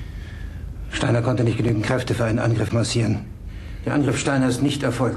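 A middle-aged man speaks firmly and steadily.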